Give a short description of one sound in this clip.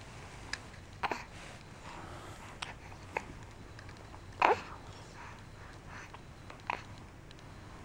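A baby coos and babbles softly up close.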